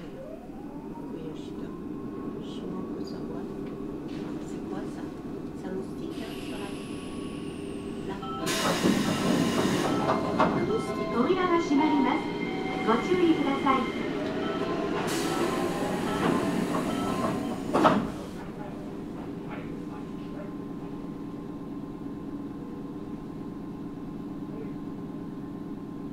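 A train's engine hums steadily at a standstill.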